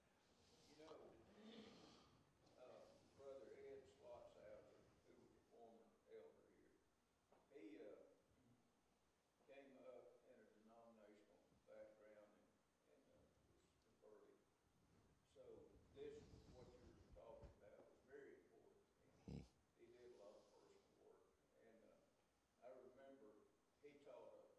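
A man speaks calmly into a microphone in a large echoing room.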